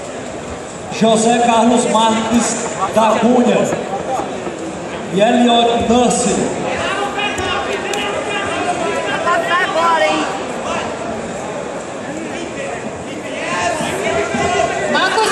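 Several people in a crowd shout loudly in a large echoing hall.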